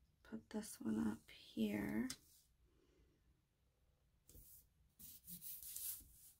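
A sticker peels off a backing sheet.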